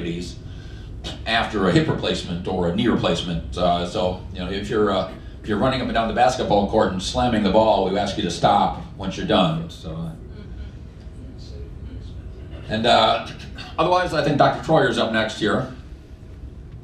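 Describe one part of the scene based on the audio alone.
A man speaks through a microphone in a calm, lecturing way.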